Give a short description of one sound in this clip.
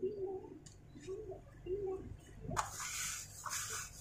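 A cloth rustles as it is dropped down.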